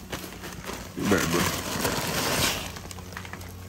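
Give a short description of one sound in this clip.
Wood shavings pour from a bag into a plastic pool.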